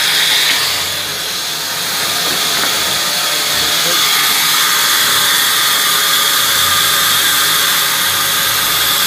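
A large band saw runs with a steady whine.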